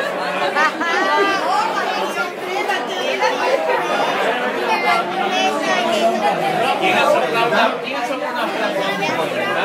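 A group of men and women laugh loudly together, close by.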